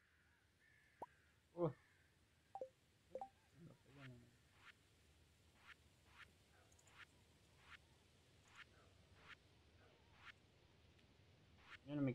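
Short, soft game menu blips and pops come one after another.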